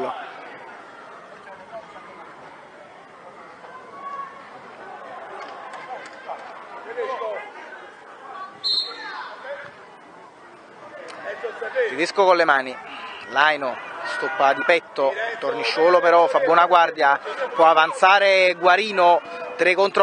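Children shout and call to each other on an outdoor pitch.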